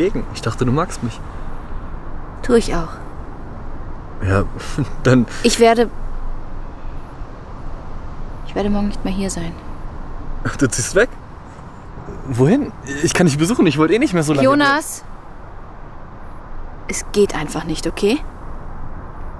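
A young man speaks quietly nearby.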